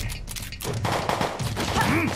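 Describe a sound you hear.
Guns fire in rapid shots.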